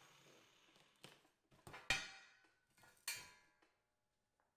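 Metal parts clank as they are handled.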